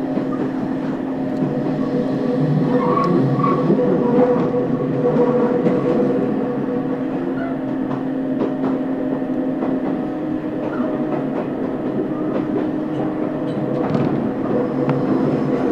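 A train hums and rumbles steadily while moving.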